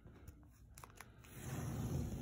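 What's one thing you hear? Painter's tape peels off a wall with a crackling rip.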